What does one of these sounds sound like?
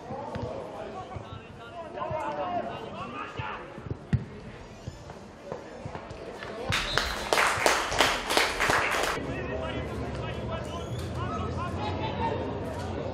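Players shout to each other across an open field.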